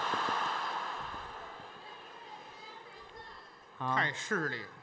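An audience applauds in a large hall, then fades away.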